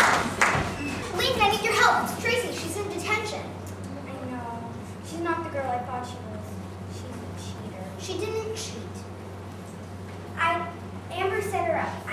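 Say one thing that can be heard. A young girl speaks on a stage, heard from a distance in a large echoing hall.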